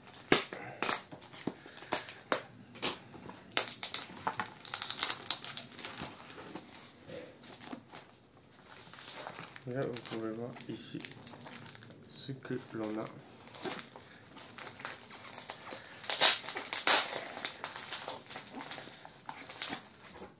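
Hands rip packing tape from a cardboard box.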